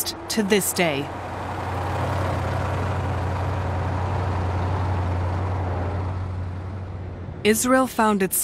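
A heavy truck engine rumbles steadily as it rolls past.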